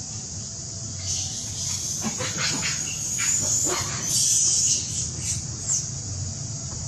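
A baby monkey squeaks and squeals in high, thin cries.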